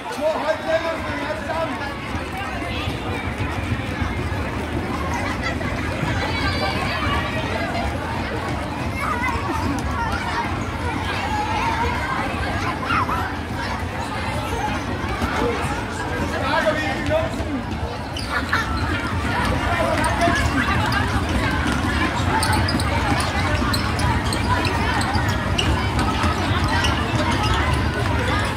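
A large crowd of children chatters and calls out in a big echoing hall.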